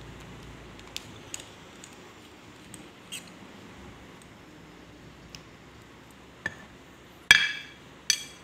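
A metal part taps down onto a ceramic plate.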